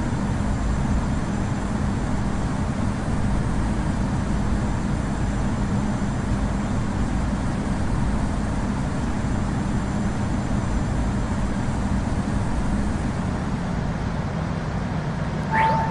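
Jet engines roar with a steady, low rumble.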